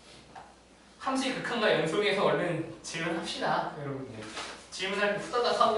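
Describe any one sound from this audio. A young man speaks calmly in a slightly echoing room.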